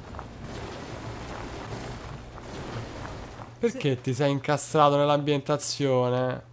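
Footsteps crunch on gravel and debris.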